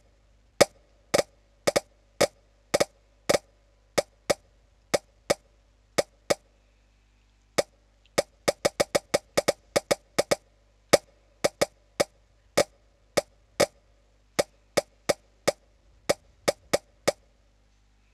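Quick bright pops sound each time a food piece lands on a stack.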